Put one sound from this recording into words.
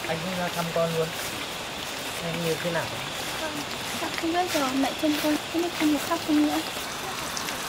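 A young man and a young woman talk quietly nearby.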